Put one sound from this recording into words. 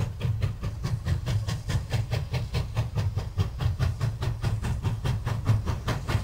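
A steam locomotive chuffs hard in quick, steady bursts as it pulls away.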